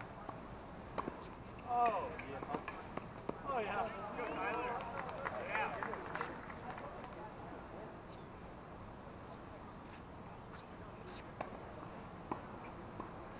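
A tennis ball is hit back and forth with rackets in sharp pops.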